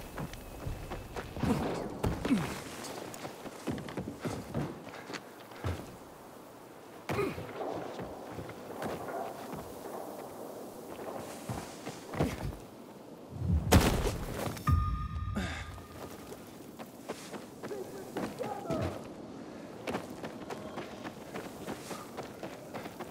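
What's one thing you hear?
Footsteps thud and rustle through grass.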